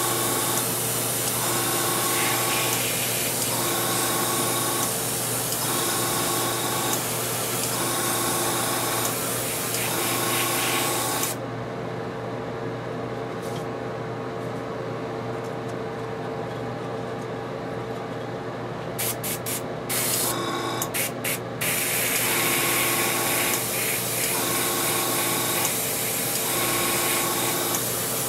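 An airbrush hisses in bursts as it sprays paint.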